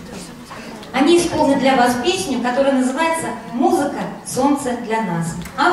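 A woman speaks clearly through a microphone in a large hall.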